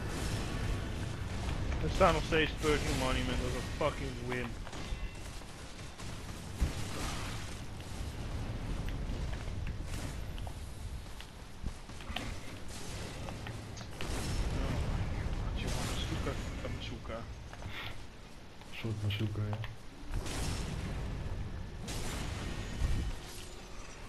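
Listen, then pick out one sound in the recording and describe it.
Heavy blades clash and strike in a fight.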